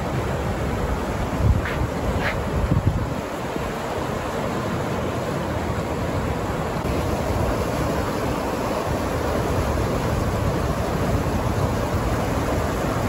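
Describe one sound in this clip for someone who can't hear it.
Rushing water pours steadily over a weir nearby.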